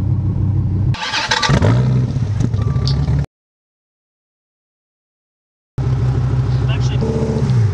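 A sports car engine idles with a deep, steady rumble.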